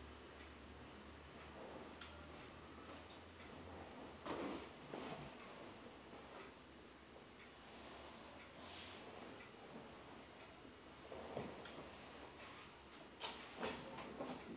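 A leather sofa creaks and rustles as someone shifts on it.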